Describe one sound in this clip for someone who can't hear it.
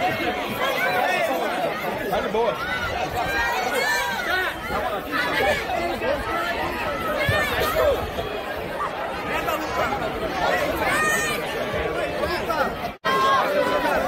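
Several men talk close by over a murmuring crowd.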